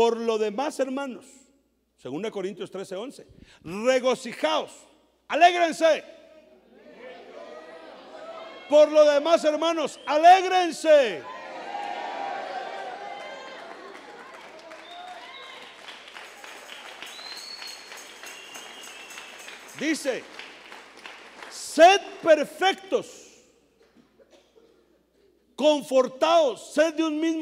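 A man preaches with animation through a microphone and loudspeakers, in bursts with pauses, in a large echoing hall.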